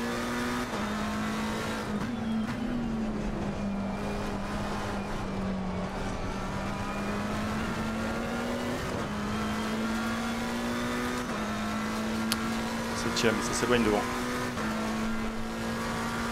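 A racing car engine roars steadily, its pitch dropping and climbing with each gear change.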